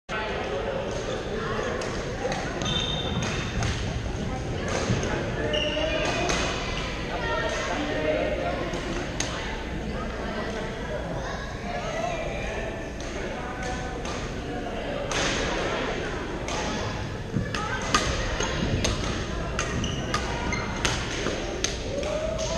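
Paddles smack balls with sharp hollow pops in a large echoing gym.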